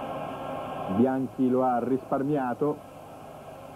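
A large crowd of fans sings and chants loudly.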